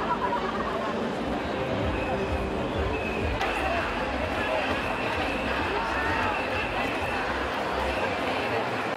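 A large crowd of women chants and calls out outdoors.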